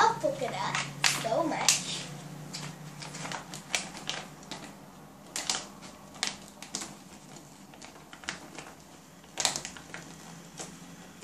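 Plastic wrapping crinkles and rustles as it is opened.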